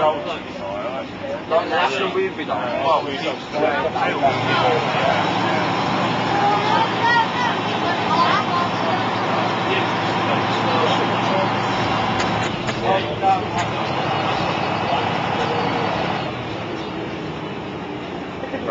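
A bus interior rattles and creaks over the road.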